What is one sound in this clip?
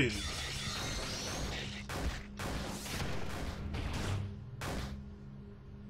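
Punches and blasts crash one after another in a video game fight.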